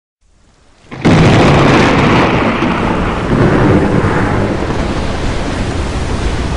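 Rushing water roars loudly.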